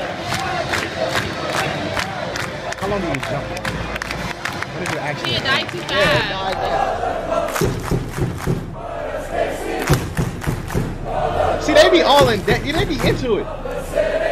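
A large stadium crowd chants and cheers.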